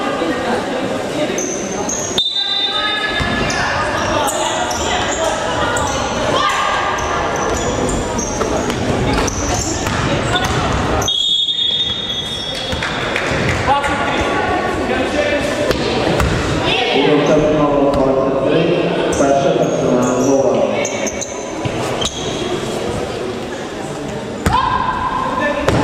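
Young women players call out and shout across an echoing hall.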